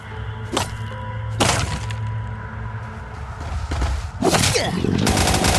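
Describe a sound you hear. A weapon swings and strikes with sharp thuds.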